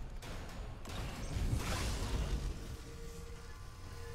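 A weapon fires with a loud whooshing burst.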